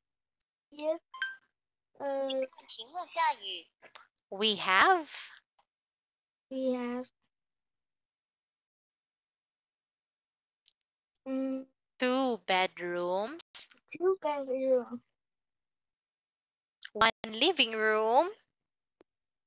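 A young woman speaks clearly over an online call.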